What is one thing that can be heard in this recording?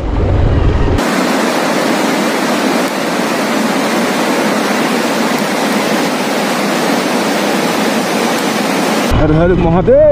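A mountain stream rushes loudly over rocks.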